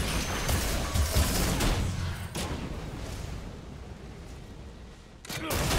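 Magic attacks zap and clash.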